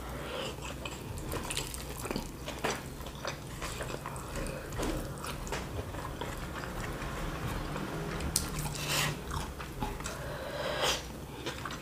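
Fingers rustle and pick through crumbly food.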